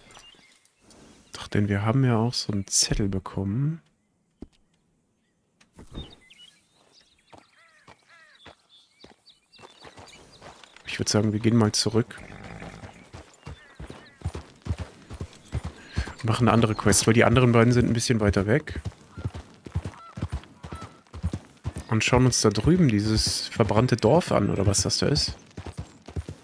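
Horse hooves clop on a dirt path.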